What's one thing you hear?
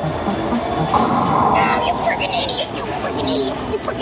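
An arcade machine sounds a short game-over jingle.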